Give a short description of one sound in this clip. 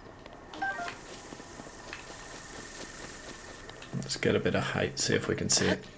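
Footsteps patter on grass and dirt.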